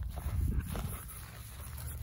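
A dog runs through dry grass, rustling it.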